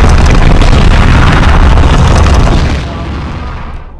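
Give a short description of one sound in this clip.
A heavy stone wheel rumbles and grinds as it rolls.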